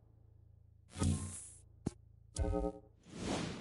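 Menu clicks sound sharply a few times.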